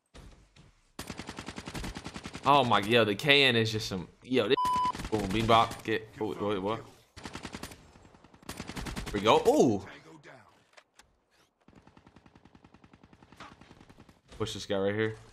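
A rapid burst of gunfire rattles.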